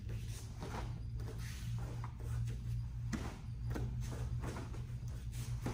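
Bare feet thump and shuffle on a padded mat.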